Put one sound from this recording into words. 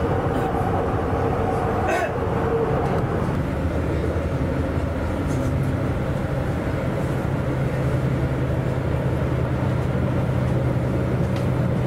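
A moving train rumbles steadily.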